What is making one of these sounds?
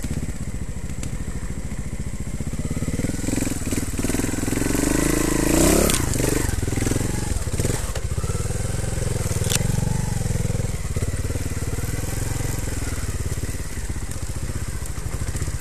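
A motorcycle engine drones and revs close by.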